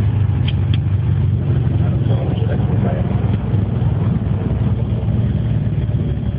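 A small plane's propeller engine drones loudly and steadily, heard from inside the cabin.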